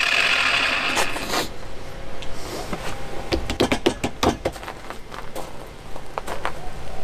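A metal bar clanks and clicks against a workbench.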